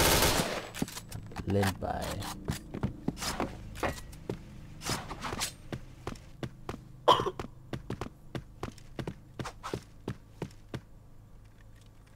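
Footsteps thud quickly on hard ground as someone runs.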